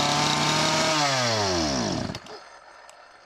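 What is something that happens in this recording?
A chainsaw engine sputters and dies.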